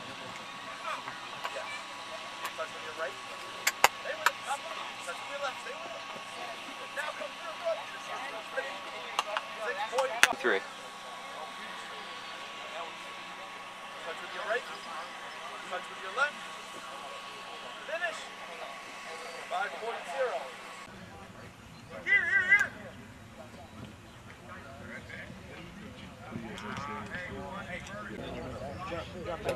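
Men talk and call out outdoors on a field.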